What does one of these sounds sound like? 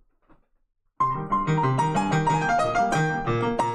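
A piano plays a run of notes.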